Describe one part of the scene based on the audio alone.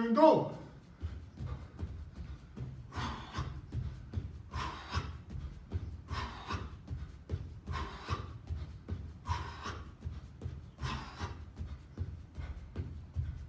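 A man's feet thud on a padded floor as he does jumping jacks.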